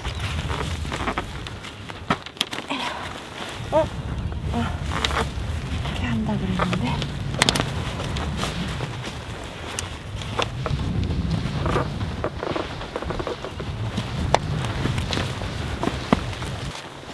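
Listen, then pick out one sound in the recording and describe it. Tent poles click and rattle.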